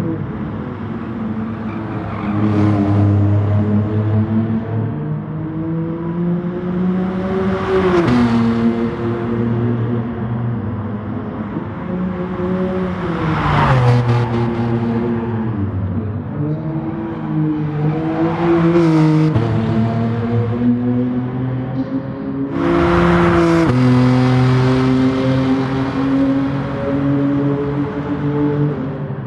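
A race car engine roars loudly, rising and falling in pitch as it shifts gears.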